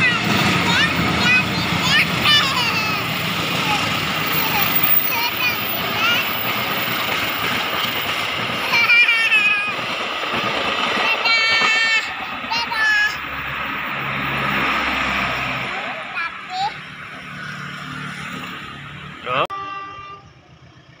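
A passenger train rolls past with a steady rumble and clatter of wheels on rails.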